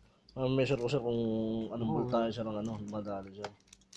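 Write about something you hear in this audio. A hard plastic case clicks and knocks as it is handled.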